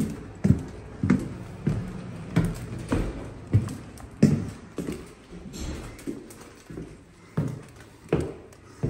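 Shoes thump steadily on wooden stairs.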